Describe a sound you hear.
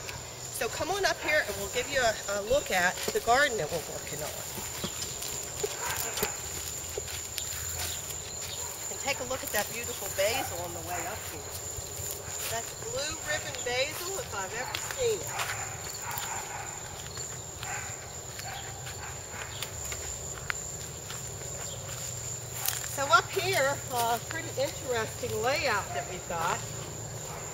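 An older woman talks calmly and close by.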